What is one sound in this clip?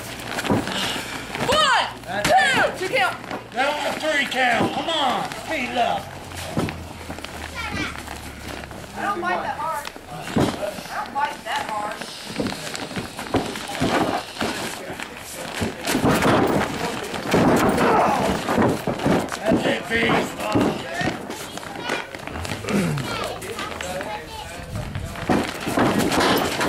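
A few men shout and call out nearby in an echoing hall.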